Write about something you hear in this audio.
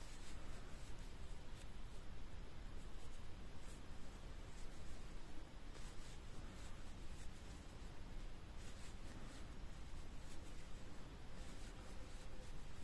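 A crochet hook softly rustles and pulls through yarn.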